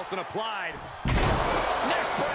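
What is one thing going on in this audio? A wrestler slams onto the ring mat with a heavy thud.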